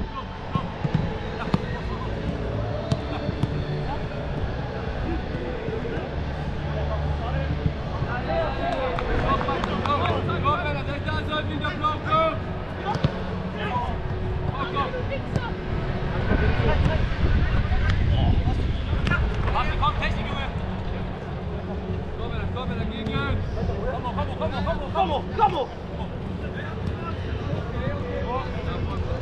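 Wind blows across an open outdoor field.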